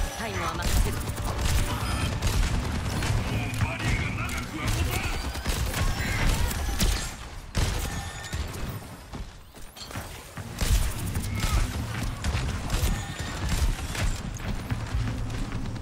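Electronic energy beams hum and whine in a game.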